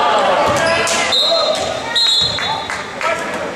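A referee blows a whistle.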